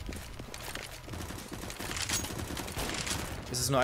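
A rifle is drawn with a metallic click.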